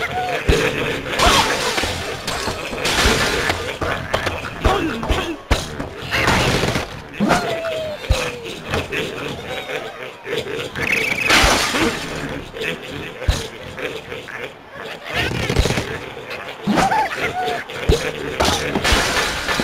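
Wooden blocks and glass crash and shatter as a structure collapses.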